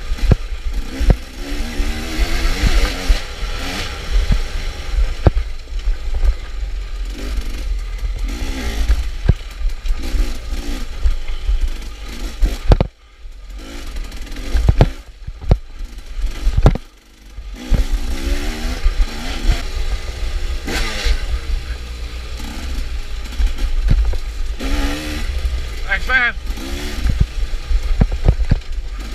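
A dirt bike engine revs and rises and falls in pitch.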